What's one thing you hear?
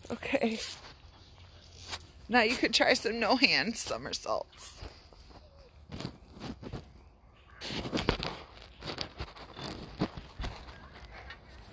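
A child's feet thump on a trampoline mat.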